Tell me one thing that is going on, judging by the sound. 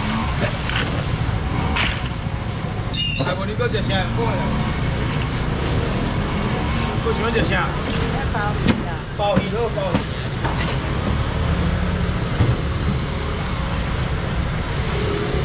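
A crowd murmurs steadily all around.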